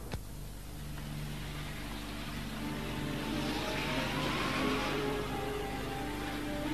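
A small van's engine hums as it drives past outdoors.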